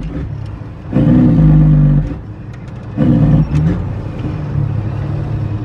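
Tyres roll on a road.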